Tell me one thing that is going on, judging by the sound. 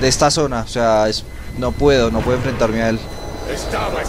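A young man talks through a microphone.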